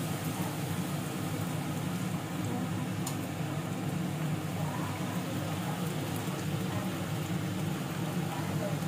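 A puri sizzles and bubbles as it deep-fries in hot oil.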